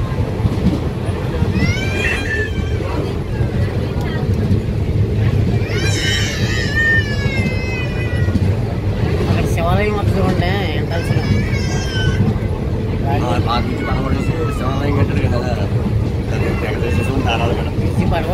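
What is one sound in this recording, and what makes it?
A train rumbles steadily across a bridge.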